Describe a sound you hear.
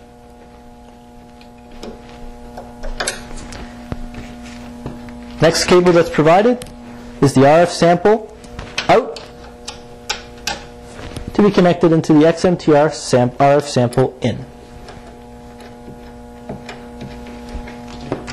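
Cable plugs click into metal sockets.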